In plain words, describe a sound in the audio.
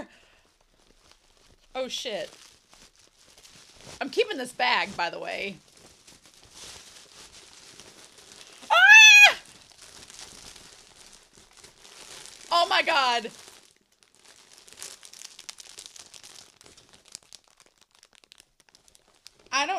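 A plastic gift bag crinkles and rustles.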